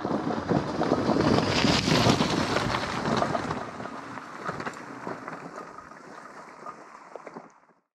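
Bicycles roll past over a rough gravel track.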